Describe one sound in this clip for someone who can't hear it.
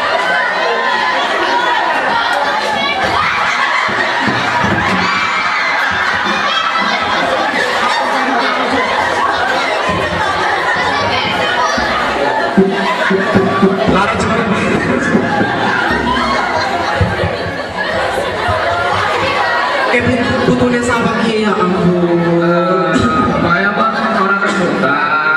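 A man chants loudly nearby.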